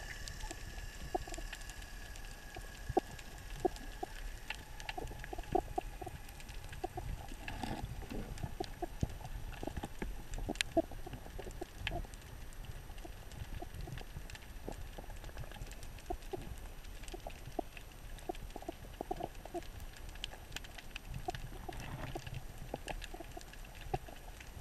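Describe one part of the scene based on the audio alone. Water rumbles low and muffled underwater.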